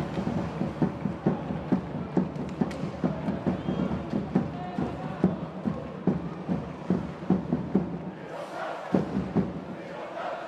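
A crowd chants in a steady rhythm in a large echoing arena.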